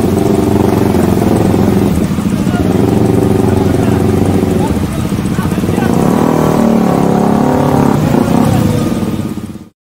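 A motorcycle engine idles close by with a steady rumble.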